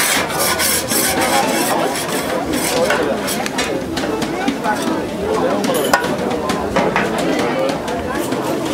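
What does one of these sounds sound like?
People chatter nearby in a busy crowd.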